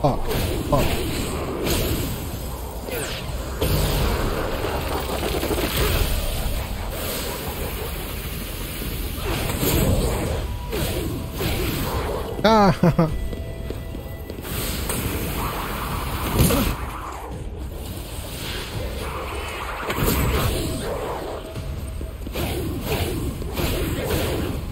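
Magic blasts crackle and burst.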